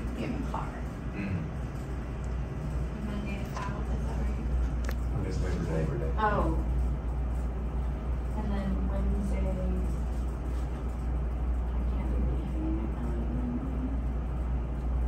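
A woman speaks calmly over an online call, heard through a loudspeaker in a room.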